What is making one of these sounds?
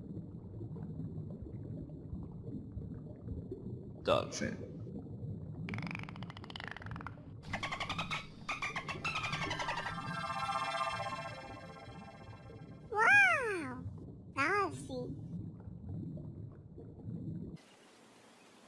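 Water rumbles low and steady underwater.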